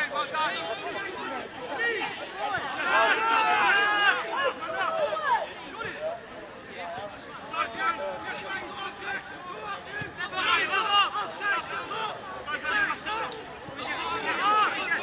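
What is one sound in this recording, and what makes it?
Men shout and call out to each other from a distance.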